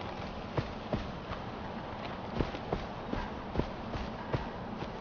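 Footsteps crunch steadily over grass and rock outdoors.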